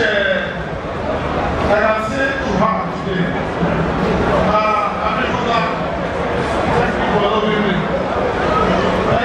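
A man sings into a microphone over a loudspeaker.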